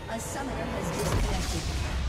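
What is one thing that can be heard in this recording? Magical spell effects crackle and boom in a battle.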